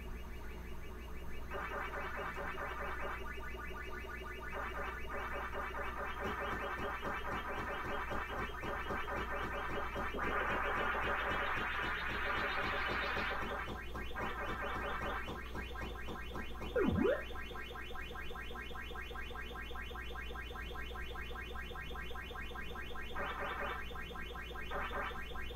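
A video game plays a rapid, steady munching chirp.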